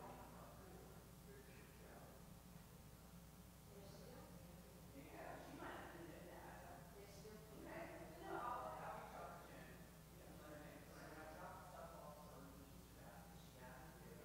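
An elderly woman speaks calmly in a room with a slight echo.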